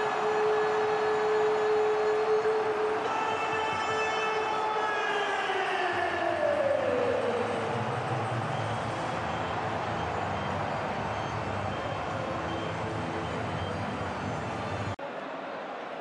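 A large stadium crowd cheers a goal.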